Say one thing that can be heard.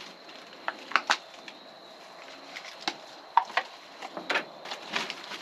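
Pruning shears snip sharply at plant stems, one click at a time.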